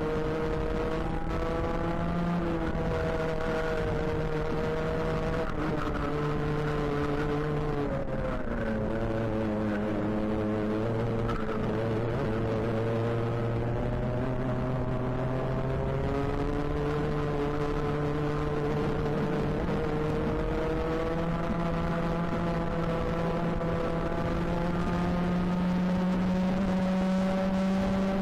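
A kart engine drones loudly up close, its pitch falling when slowing and rising when speeding up.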